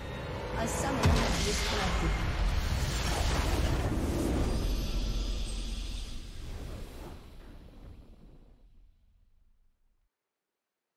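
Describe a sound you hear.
A large explosion booms and rumbles, then slowly fades away.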